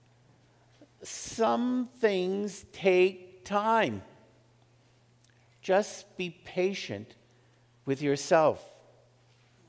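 An elderly man speaks slowly into a microphone, with long pauses.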